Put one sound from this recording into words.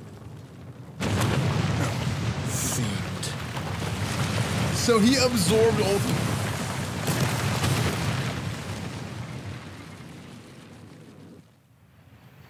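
A loud rumbling blast roars and slowly fades.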